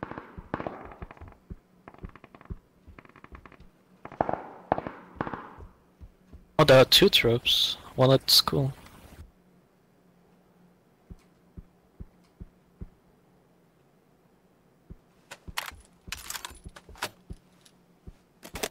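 Footsteps thud on a wooden floor indoors.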